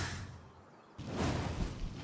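A fiery blast bursts and crackles.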